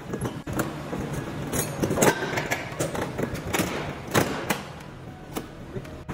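A metal panel clanks and rattles as it is lifted.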